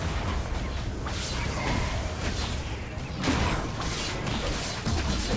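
Game blows thud in quick succession.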